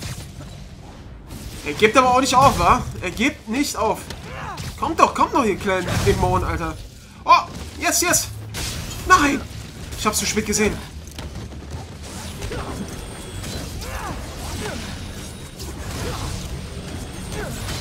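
Blows land with heavy thuds in a fight.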